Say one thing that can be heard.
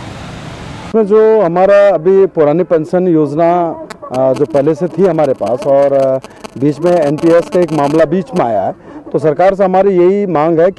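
A middle-aged man speaks firmly into microphones outdoors.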